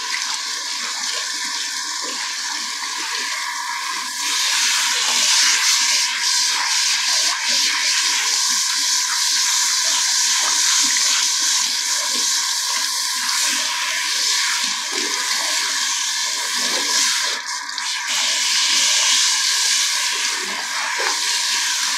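Water from a shower sprayer hisses onto hair and splashes into a basin.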